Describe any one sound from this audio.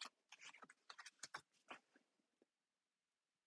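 Playing cards slap and slide onto a table.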